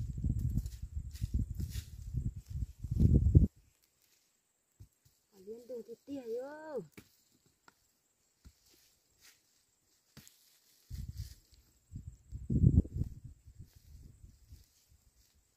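A hoe chops and scrapes into soil.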